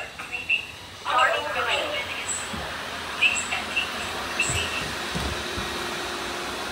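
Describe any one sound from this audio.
Robot vacuum cleaners whir as they start moving.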